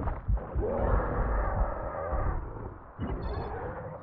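Blows and screeches of a fierce fight ring out.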